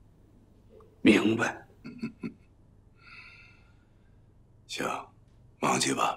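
An older man speaks warmly with a chuckle.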